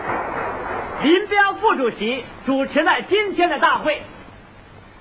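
An elderly man reads out a speech loudly through a microphone.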